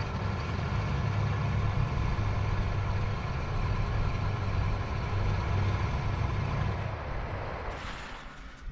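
Twin propeller engines drone steadily at idle, then fade.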